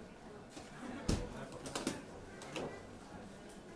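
Knocks and thumps as a guitar case is handled.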